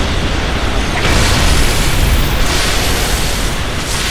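A loud burst of hissing crackle breaks out and swells.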